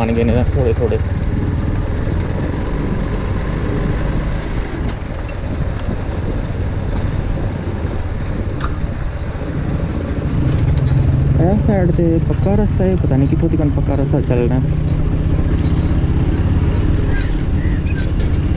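Tyres roll over a rough dirt road.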